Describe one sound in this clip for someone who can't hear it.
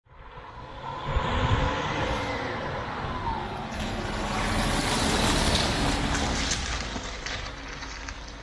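A car drives past close by on tarmac and moves away.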